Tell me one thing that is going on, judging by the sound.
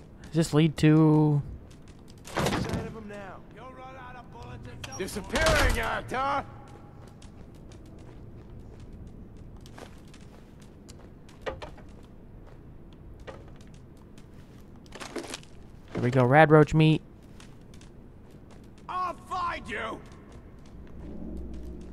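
Footsteps crunch softly over debris.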